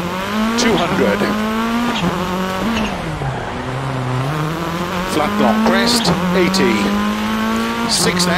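A rally car engine roars, revving up and down through gear changes.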